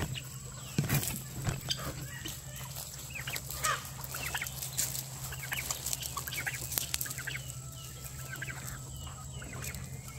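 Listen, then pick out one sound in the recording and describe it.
Chickens cluck and chirp outdoors.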